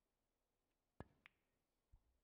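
A cue tip strikes a snooker ball with a sharp click.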